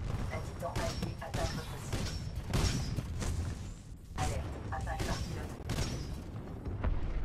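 Rapid gunfire bursts loudly and repeatedly.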